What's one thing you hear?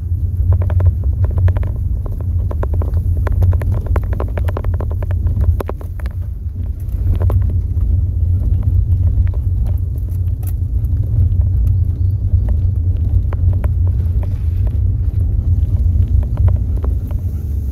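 Tyres crunch and rattle over a rough road.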